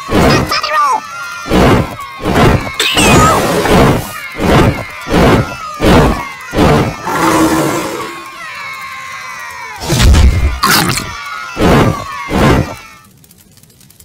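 Flames roar and whoosh in repeated bursts.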